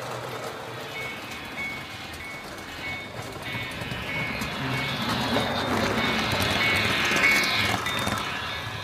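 A model train horn toots in short repeated beeps.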